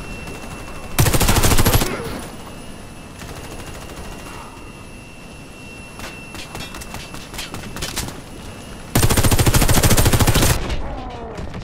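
Rifle fire bursts out loudly in rapid shots.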